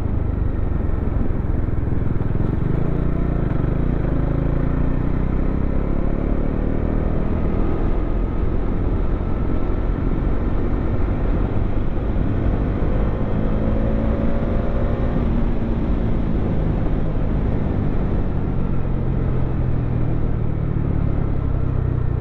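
A motorcycle engine roars steadily, its pitch rising and falling as it speeds up.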